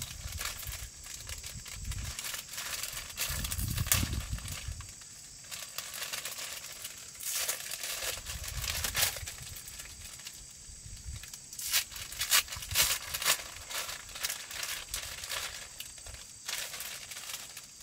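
A plastic bag crinkles and rustles in a boy's hands.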